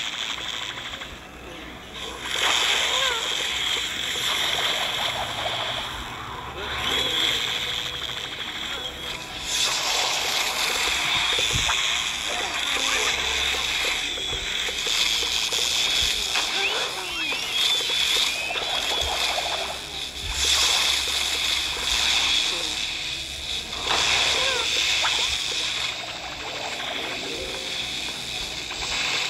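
Game projectiles pop and burst in rapid bursts.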